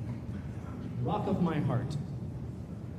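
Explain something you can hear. A man speaks briefly into a microphone in a large hall.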